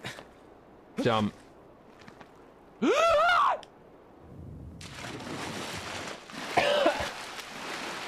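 A young man exclaims loudly into a close microphone.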